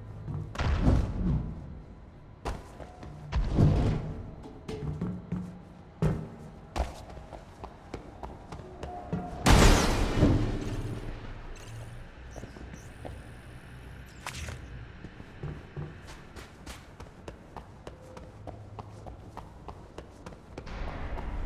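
Footsteps thud quickly on hard floors.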